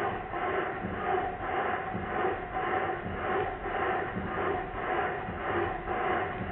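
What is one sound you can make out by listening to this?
A small steam engine chuffs in a steady, quick rhythm.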